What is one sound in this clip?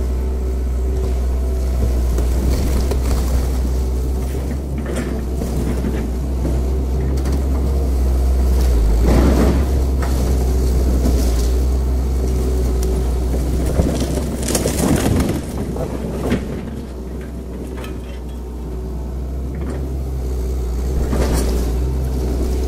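Debris crunches and clatters as an excavator grapple moves through a pile.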